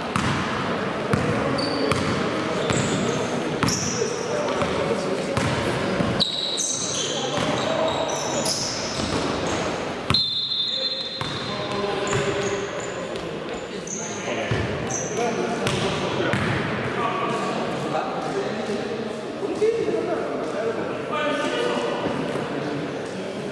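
Players call out to each other in a large echoing hall.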